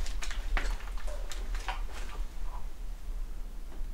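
Footsteps crunch on a gritty floor.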